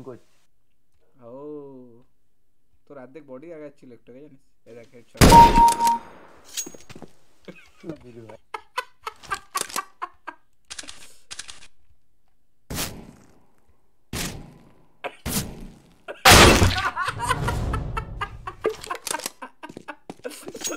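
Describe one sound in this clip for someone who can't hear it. A young man talks and laughs excitedly into a microphone, close up.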